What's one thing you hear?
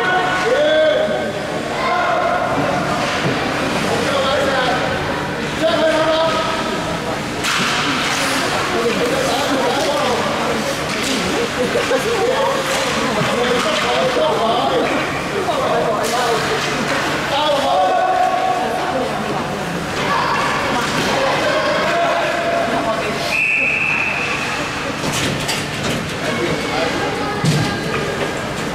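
Hockey sticks clack against each other and the puck.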